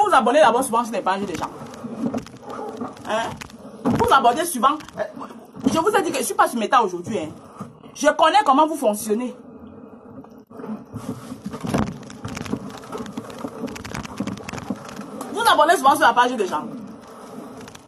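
A woman talks with animation close to a phone microphone.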